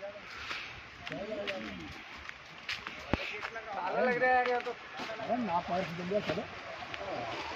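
Men talk nearby in calm voices.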